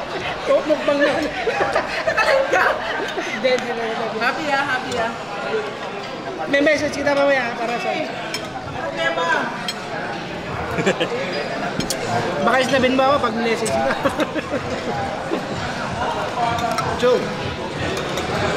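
A hubbub of voices fills a busy room.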